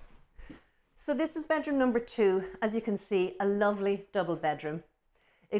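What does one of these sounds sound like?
A woman speaks with animation into a clip-on microphone, close by.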